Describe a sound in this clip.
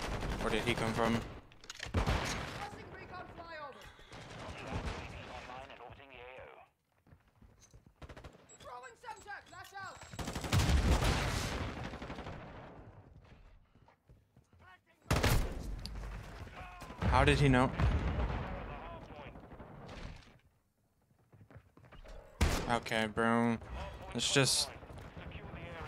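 Rapid gunshots fire in a video game.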